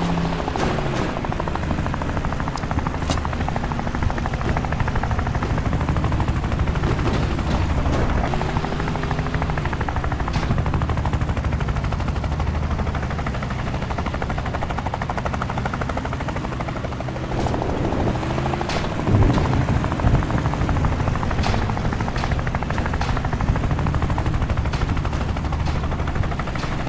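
A helicopter's rotor thumps.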